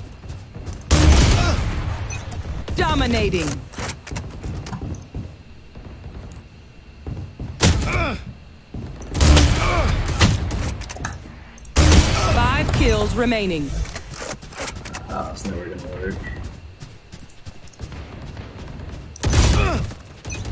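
A sniper rifle fires single loud shots.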